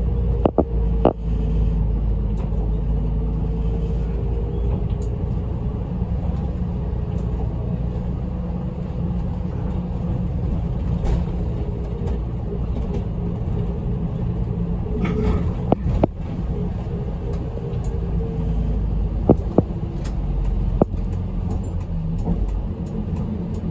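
A bus engine hums steadily from inside the cabin.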